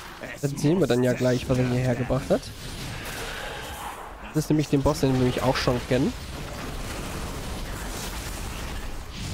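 Magic spells crackle and whoosh during a fight.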